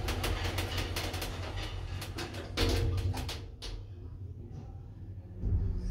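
Elevator doors slide closed.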